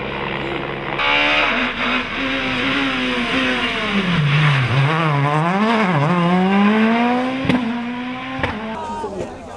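A rally car engine revs hard and shifts gears as the car speeds past.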